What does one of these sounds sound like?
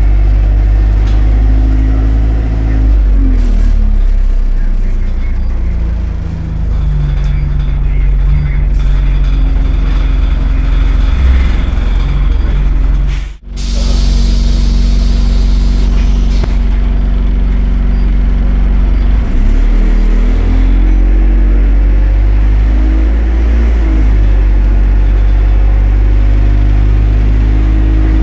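A bus engine hums and whines steadily, rising and falling in pitch as the bus speeds up and slows.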